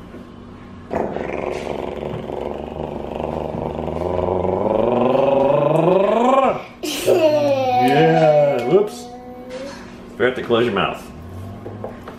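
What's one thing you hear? A baby squeals and laughs with delight.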